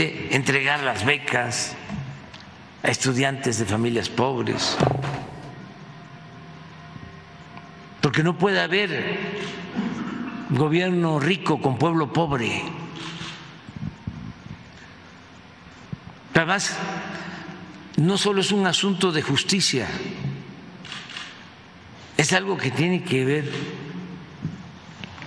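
An elderly man speaks into a microphone, in short bursts with pauses.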